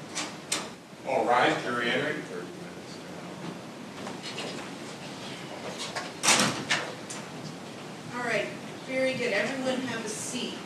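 A man speaks briefly in a calm voice nearby.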